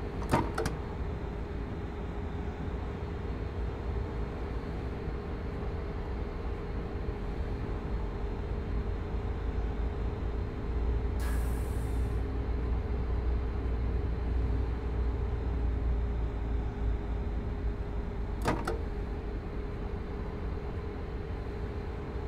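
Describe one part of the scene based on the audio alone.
An electric train hums and rumbles steadily along the rails.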